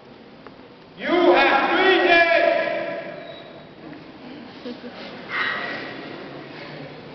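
Men sing loudly together.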